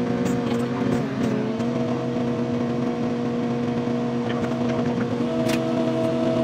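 A car engine drones steadily as the car drives along a road.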